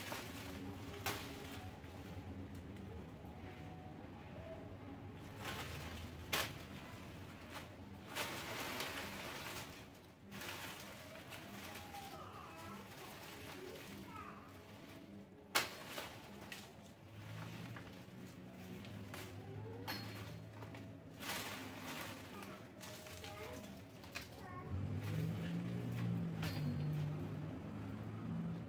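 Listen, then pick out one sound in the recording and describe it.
Leaves and cut branches rustle underfoot.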